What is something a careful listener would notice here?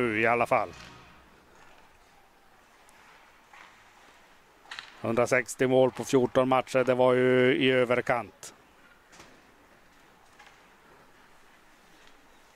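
Ice skates scrape and glide across the ice.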